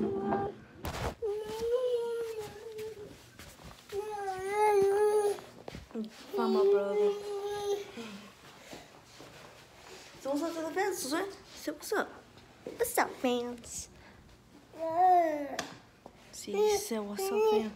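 A boy talks with animation close to the microphone.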